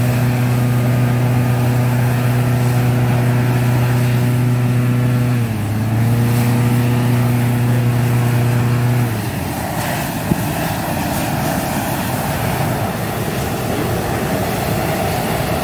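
A hot-air balloon's propane burner roars, blasting flame into the envelope.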